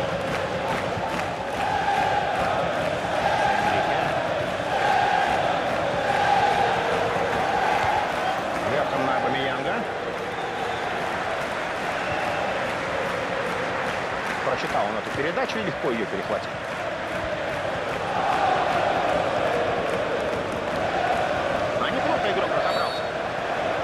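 A large stadium crowd chants and cheers steadily.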